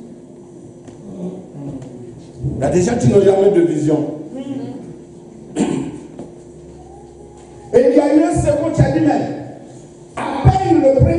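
A man preaches loudly and with passion into a microphone, in an echoing room.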